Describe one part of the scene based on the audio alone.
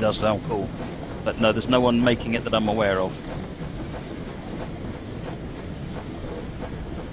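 A steam train rumbles steadily along the rails.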